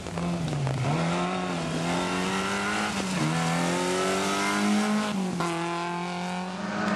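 A rally car engine revs hard, rising and dropping in pitch through gear changes.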